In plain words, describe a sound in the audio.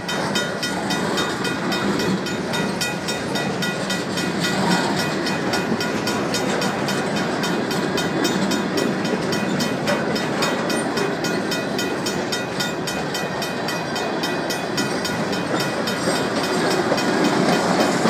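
A freight train rumbles past close by, its wheels clacking rhythmically on the rails.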